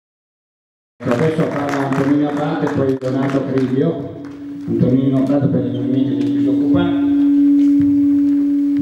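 An elderly man speaks calmly into a microphone through loudspeakers in a large room.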